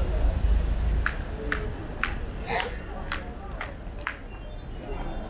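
Footsteps tap on stone steps outdoors.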